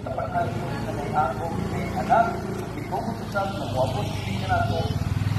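A motorcycle engine idles close by.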